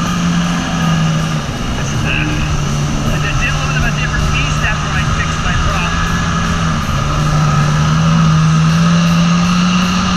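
Water sprays and hisses behind a speeding jet ski.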